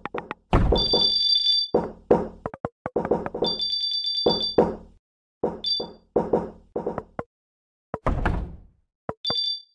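Wooden pieces crack and shatter in quick bursts.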